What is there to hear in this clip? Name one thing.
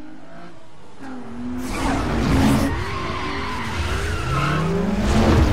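Car engines roar and rev up close.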